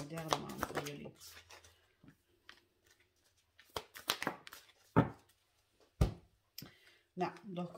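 A card is laid down on a table with a soft slap.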